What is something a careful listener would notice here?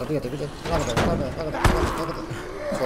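A heavy blade strikes with a thud.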